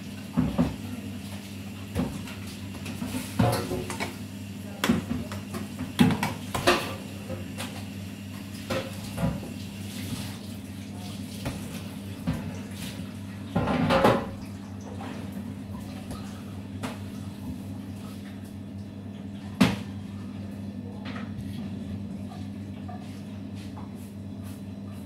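Dough balls are set down with soft thuds on a metal counter.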